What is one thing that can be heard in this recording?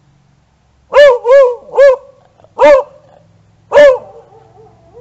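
A dog barks loudly and sharply nearby.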